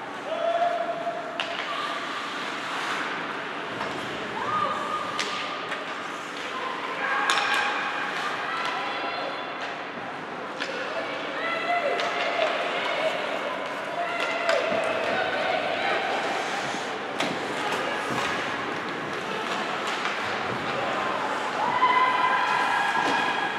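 Young men shout to each other across an echoing rink.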